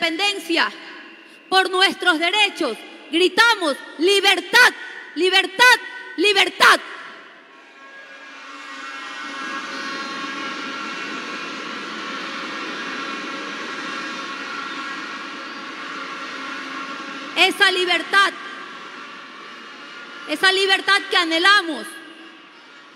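A woman speaks forcefully through a microphone and loudspeakers in a large echoing hall.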